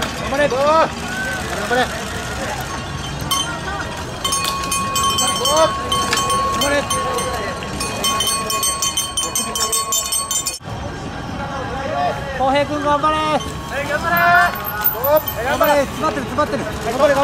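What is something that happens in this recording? Spectators shout and cheer nearby outdoors.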